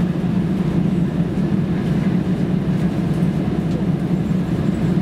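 Aircraft engines roar with a steady, low drone in the cabin.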